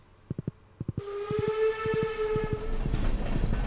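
A train whistle blows.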